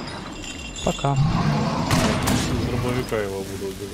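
Flames crackle nearby.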